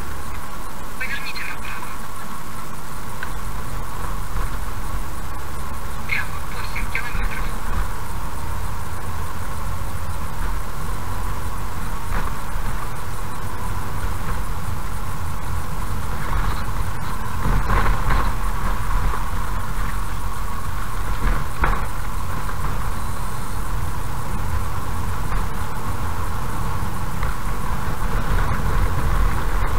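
A car engine hums steadily while driving slowly.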